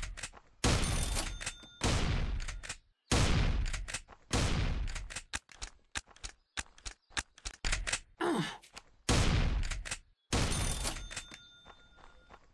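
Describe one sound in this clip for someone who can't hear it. A shotgun fires loud blasts that echo and fade.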